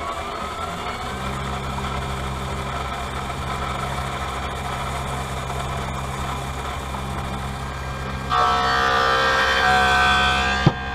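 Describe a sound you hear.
A machine hums and whirs steadily.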